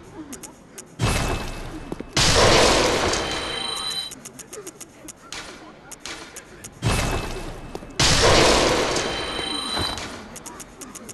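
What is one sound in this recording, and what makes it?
A shimmering magical burst swells and fades.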